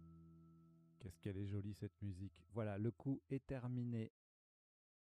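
A man speaks briefly and calmly, close to a microphone.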